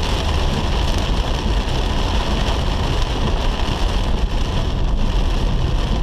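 Heavy rain drums steadily on a car's windscreen.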